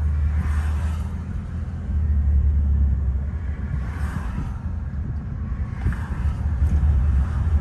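A car's engine and road noise rumble steadily from inside a moving car.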